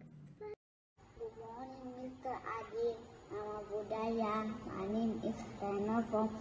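A young boy talks close up with animation.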